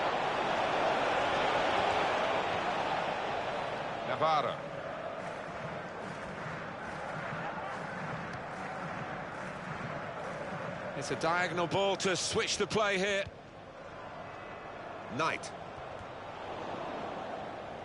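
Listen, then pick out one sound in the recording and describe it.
A large stadium crowd murmurs and roars steadily.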